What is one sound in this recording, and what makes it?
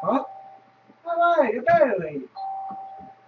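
A young man cries out in alarm through a microphone.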